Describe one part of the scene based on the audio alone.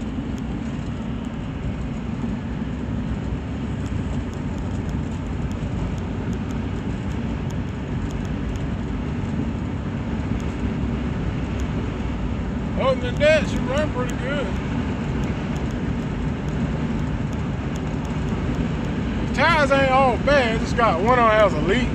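A car engine hums steadily with road noise rumbling throughout.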